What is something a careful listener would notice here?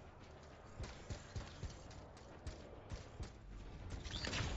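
Heavy metal footsteps thud on wooden boards.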